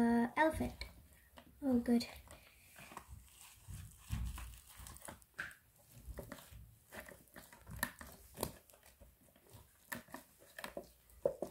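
Crumbly plaster scrapes and crunches as it is broken apart.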